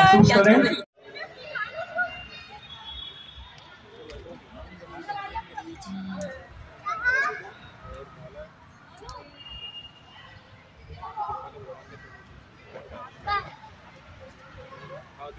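Children and adults chatter and call out faintly outdoors.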